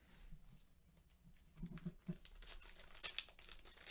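Foil card packs rustle and crinkle as hands shuffle them.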